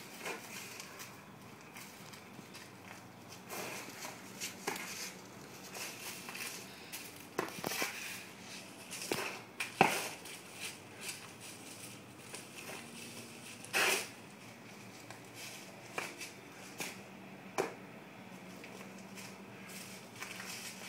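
Dry leaves crunch and rustle under shuffling feet outdoors.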